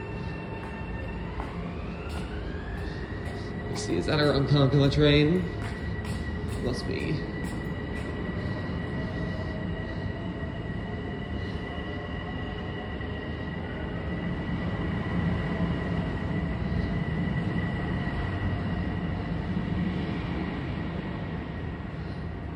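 An electric train whines, rising in pitch as it pulls away.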